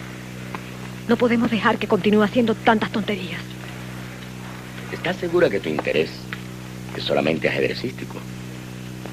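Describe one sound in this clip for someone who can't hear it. A man answers calmly, close by.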